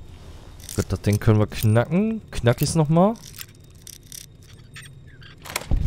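A lock pick scrapes and clicks inside a metal lock.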